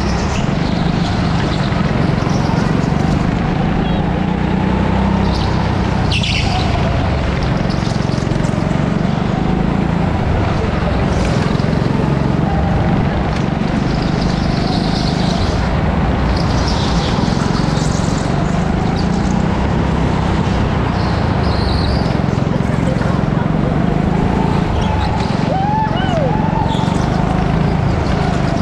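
Other go-kart engines whine nearby in a large echoing hall.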